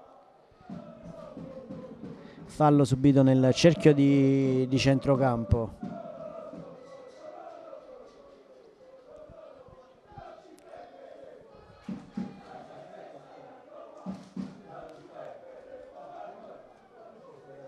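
A crowd of spectators murmurs in the distance, outdoors.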